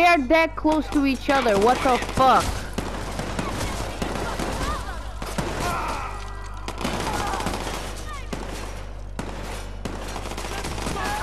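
A young woman speaks with animation into a microphone, close by.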